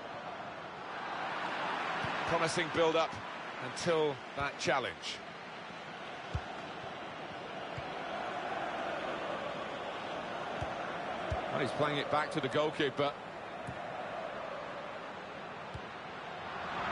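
A large stadium crowd murmurs and roars steadily throughout.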